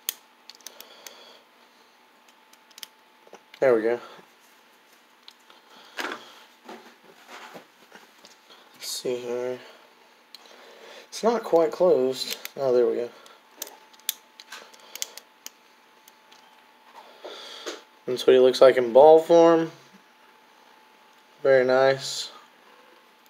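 A small plastic toy clicks and snaps as it is turned in the hands.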